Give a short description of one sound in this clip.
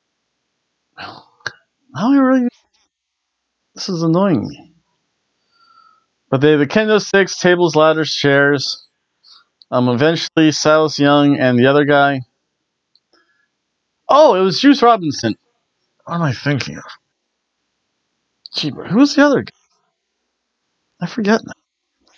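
A middle-aged man speaks close to a microphone in bursts, calmly and with animation.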